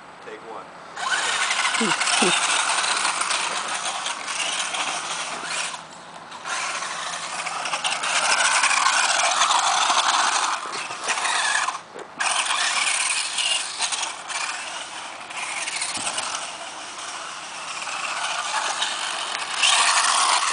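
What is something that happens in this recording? A small electric motor whines loudly as a toy car races over dirt.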